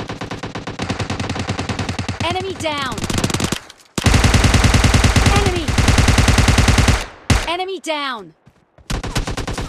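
Rapid gunfire rattles in long bursts.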